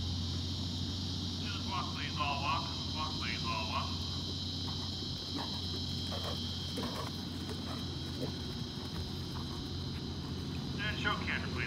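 A horse's hooves thud softly on sand at a steady trot.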